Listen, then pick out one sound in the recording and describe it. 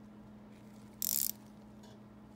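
A ratchet wrench whirs briefly as it turns a bolt.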